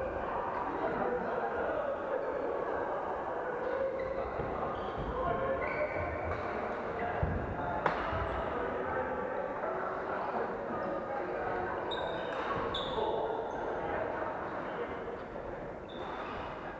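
Rackets smack shuttlecocks in a large echoing hall.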